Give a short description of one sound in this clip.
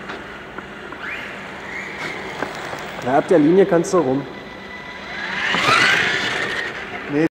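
Small electric motors whine and rise in pitch as toy cars race past.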